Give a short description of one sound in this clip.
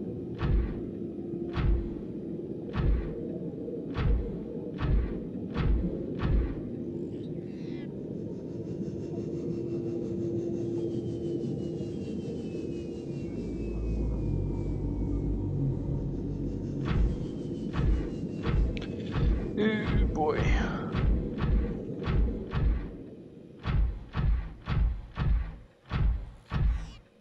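A small underwater craft hums steadily as it moves.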